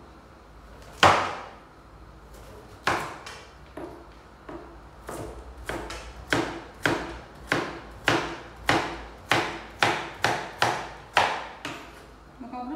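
A knife chops food on a wooden board in sharp, regular knocks.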